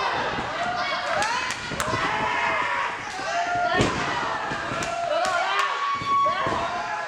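A crowd shouts and cheers in an echoing hall.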